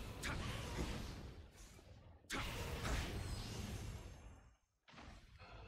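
A sword swishes and clashes in a fight.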